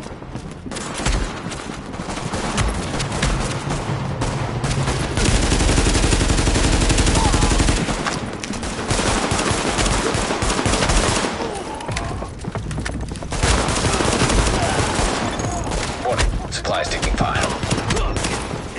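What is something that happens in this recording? Rapid gunfire crackles in bursts.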